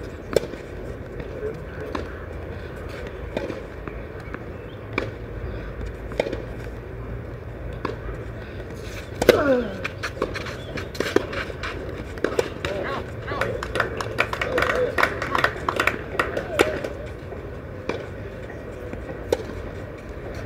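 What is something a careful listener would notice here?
A tennis ball is struck hard with a racket, back and forth in a rally.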